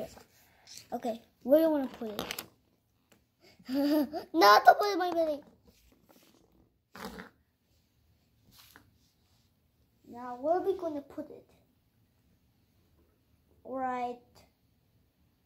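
A young child speaks playfully and excitedly, close by.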